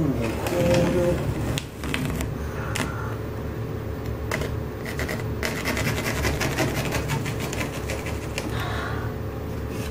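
A pencil scratches lines along a textured wall.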